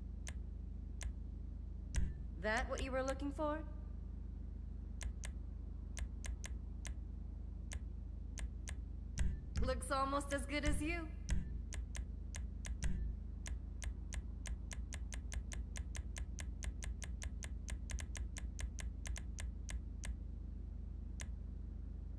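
Menu selection clicks tick in quick succession.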